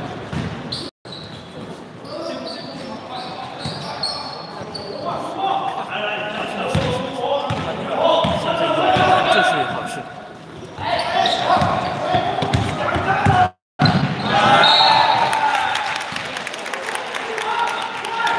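Young men shout and call out in a large echoing hall.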